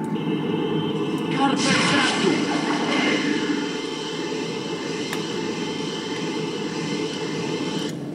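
A magic spell whooshes and sparkles.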